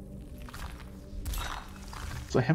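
A sword strikes with a sharp metallic clang.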